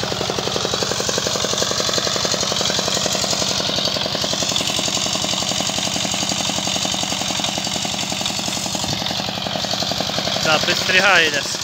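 A small engine chugs loudly and steadily close by.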